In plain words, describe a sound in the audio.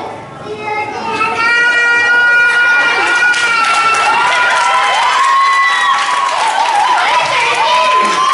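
A young boy holds a long, loud shout into a microphone over a loudspeaker.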